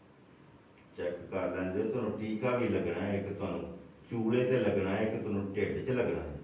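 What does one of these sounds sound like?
A man talks nearby in a calm voice.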